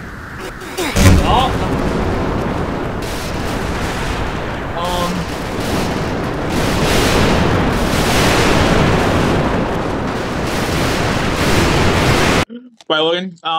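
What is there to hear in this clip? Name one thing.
A strong storm wind roars loudly and steadily.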